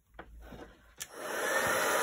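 A heat gun switch clicks on.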